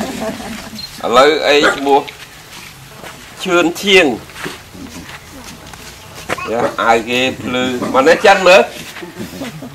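A man speaks calmly to a group of children.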